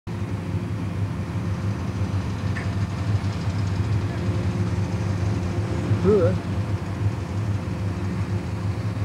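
A large diesel truck engine rumbles steadily as the truck rolls slowly forward.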